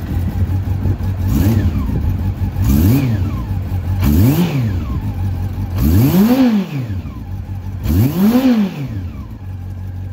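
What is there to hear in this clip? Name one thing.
A motorcycle engine revs up sharply and falls back, several times in a row.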